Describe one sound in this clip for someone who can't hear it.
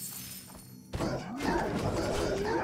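A burst of fire roars during a fight.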